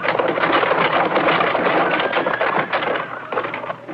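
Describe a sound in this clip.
A horse gallops past, hooves thudding on dry ground.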